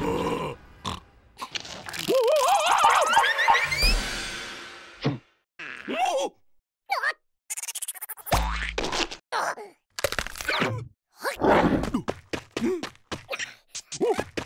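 Cartoon creatures babble and chatter in squeaky voices.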